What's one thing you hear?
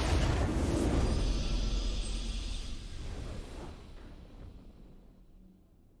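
A short triumphant game fanfare plays and fades out.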